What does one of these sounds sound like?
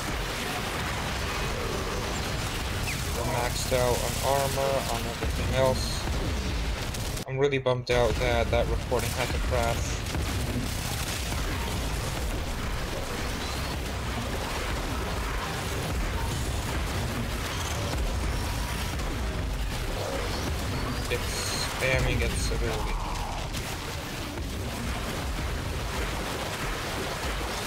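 Sword slashes whoosh and clang in a fight.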